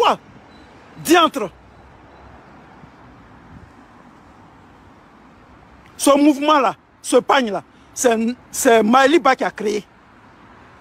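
A man speaks emphatically over an online call.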